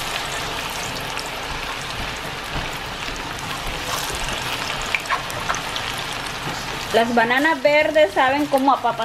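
Food sizzles and crackles in hot oil.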